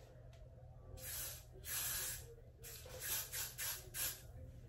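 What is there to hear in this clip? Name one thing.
An aerosol can sprays in short hissing bursts.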